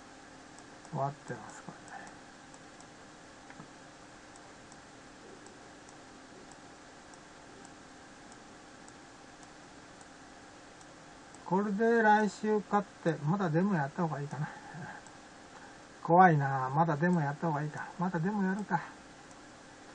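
An elderly man speaks calmly into a webcam microphone, in short bursts with pauses.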